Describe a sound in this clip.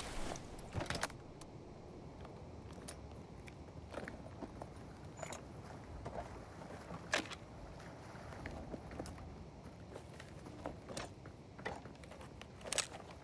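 Short clicks and soft thuds sound as items are moved around.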